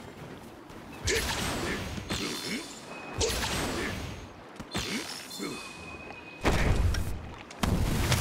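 Electric energy crackles and zaps in short bursts.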